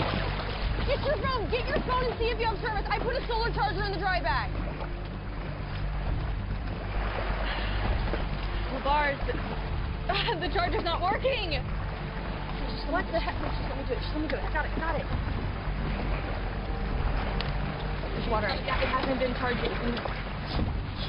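A young woman speaks nearby with animation.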